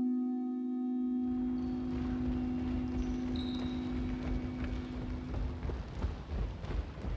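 Footsteps sound close by.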